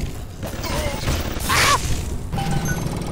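An electric bolt crackles and zaps loudly.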